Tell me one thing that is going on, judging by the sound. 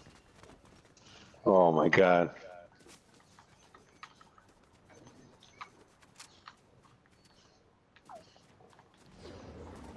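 Footsteps patter quickly through grass.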